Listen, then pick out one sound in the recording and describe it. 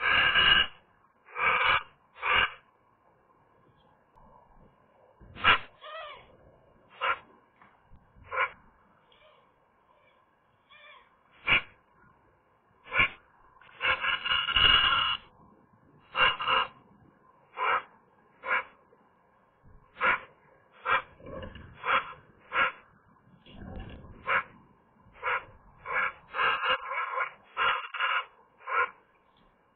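A Eurasian magpie gives harsh chattering calls close by.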